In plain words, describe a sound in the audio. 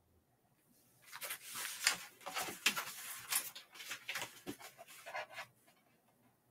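Stiff paper rustles and scrapes close by.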